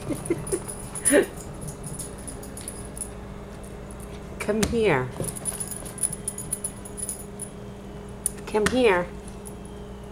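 A small dog barks and yelps sharply nearby.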